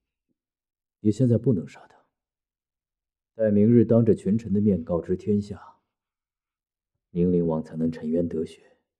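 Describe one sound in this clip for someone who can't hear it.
A man speaks tensely and forcefully, close by.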